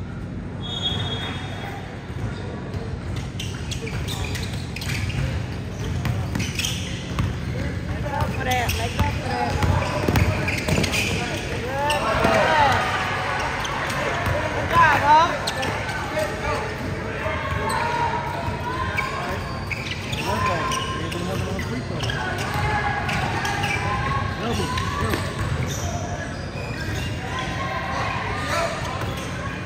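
A basketball bounces on a hard floor in a large echoing gym.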